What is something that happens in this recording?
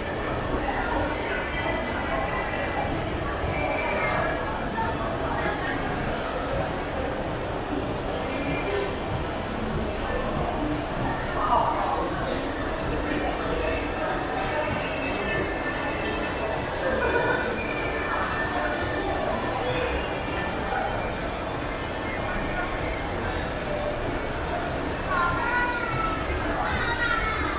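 A crowd of shoppers murmurs in a large echoing hall.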